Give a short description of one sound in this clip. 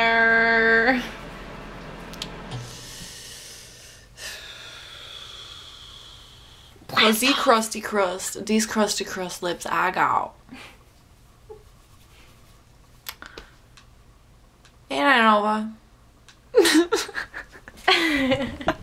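A young woman talks playfully close to a webcam microphone.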